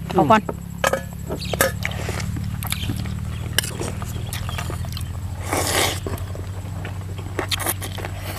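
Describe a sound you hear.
A woman slurps and chews food close by.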